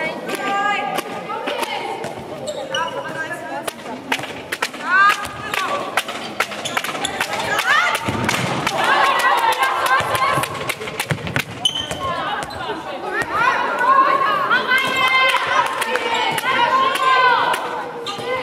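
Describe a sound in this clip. Young women shout and call to each other across the hall.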